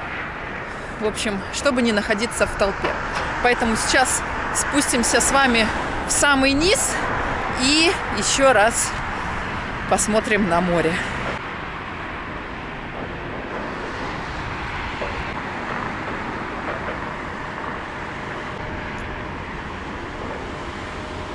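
Traffic hums steadily on a road below.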